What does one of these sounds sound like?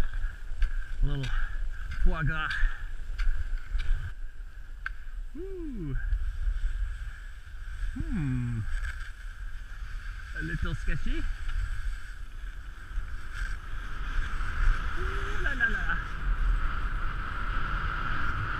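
Skis swish and scrape steadily over packed snow.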